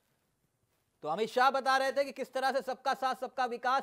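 A man presents with animation in a close, clear voice.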